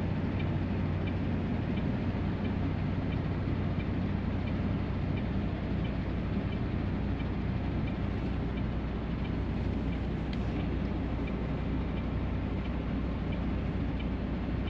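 A truck engine hums with a low, steady drone inside the cab.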